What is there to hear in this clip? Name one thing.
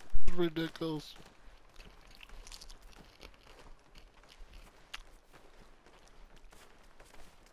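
Footsteps patter quickly on dry ground nearby.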